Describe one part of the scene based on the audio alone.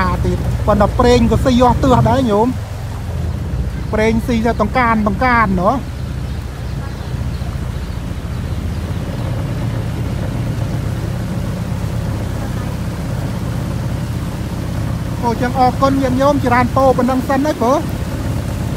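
Water splashes along a boat's hull.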